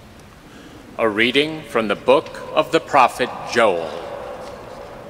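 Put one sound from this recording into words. A woman sings with vibrato in a large echoing hall.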